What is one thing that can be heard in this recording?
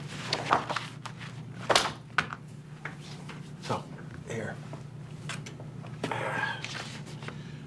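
Papers rustle as a man leafs through them.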